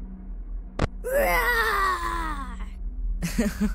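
A high, squeaky cartoon voice chatters excitedly.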